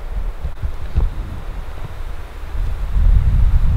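Tall dry grass rustles as someone pushes through it close by.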